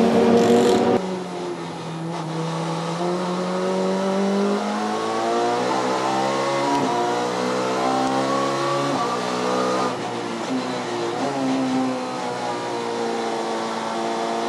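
A second touring car engine rises through the gears as the car approaches.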